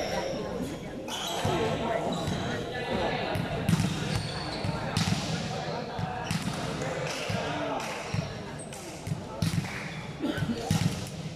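A crowd of people chatter and call out in a large echoing hall.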